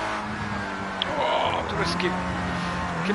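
Tyres squeal as a racing car corners.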